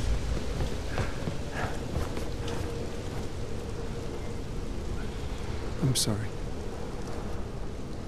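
A young man speaks quietly.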